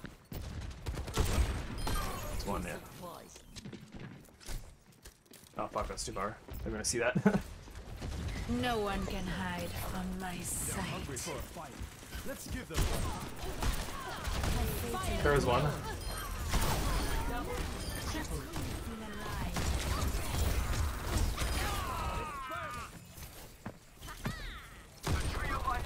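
Gunshots fire in quick bursts.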